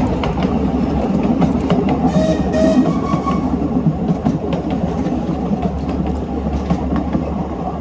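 A small steam train rumbles and clatters along the track.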